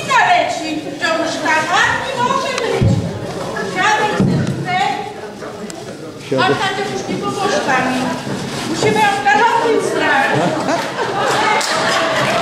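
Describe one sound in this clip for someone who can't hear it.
A woman speaks with animation on a stage, heard through a microphone in a large hall.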